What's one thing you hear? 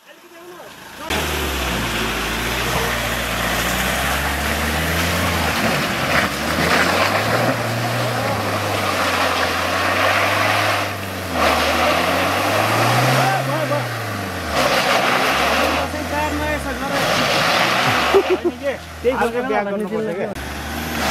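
An engine revs hard and strains up and down.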